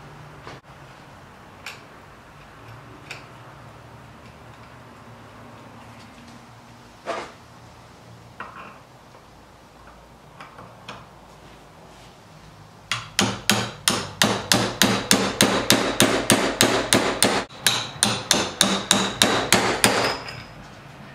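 A metal tool clicks and scrapes against metal, then scrapes rapidly in quick, even strokes.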